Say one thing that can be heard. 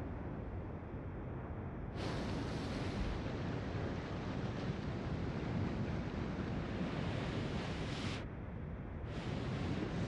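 Sea water rushes and splashes against a moving ship's hull.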